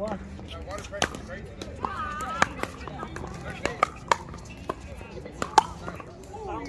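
Pickleball paddles hit a plastic ball with sharp pops.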